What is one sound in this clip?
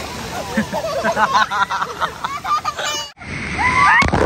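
A young girl laughs and squeals.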